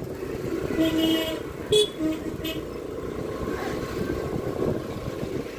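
A motorcycle engine rumbles steadily as it rides slowly along.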